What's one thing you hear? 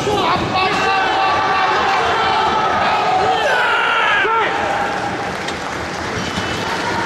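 A crowd of men shouts encouragement loudly.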